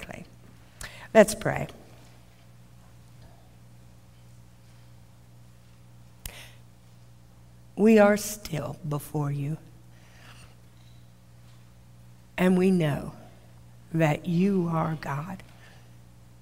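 An elderly woman speaks slowly and calmly into a microphone, with long pauses.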